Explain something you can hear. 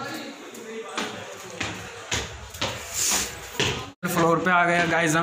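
Bare feet step up stone stairs.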